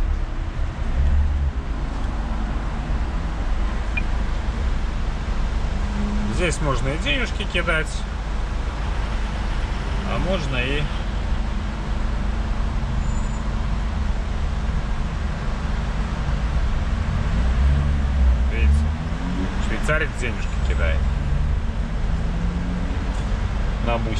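A large diesel engine idles with a deep, steady rumble.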